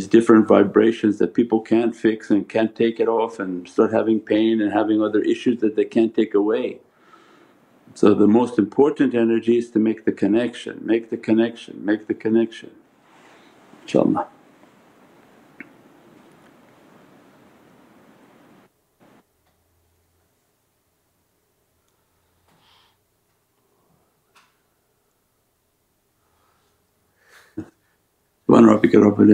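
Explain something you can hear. An elderly man speaks calmly into a close microphone, pausing now and then.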